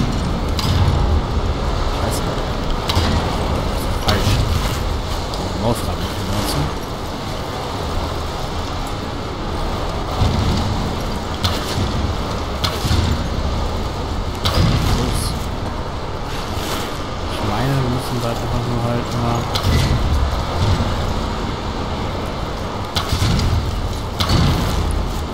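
Bowstrings twang as arrows are shot again and again.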